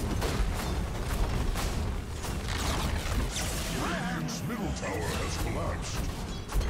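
Game fight effects clash and crackle with sharp bursts.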